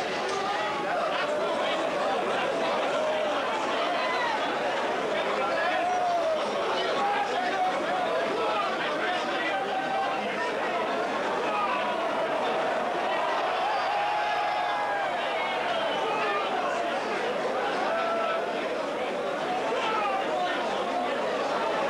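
A large crowd shouts and cheers excitedly.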